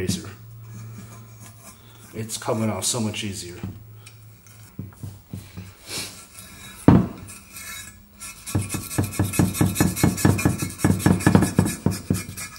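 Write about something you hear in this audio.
Fingers scrape and pick at the rim of a metal cover.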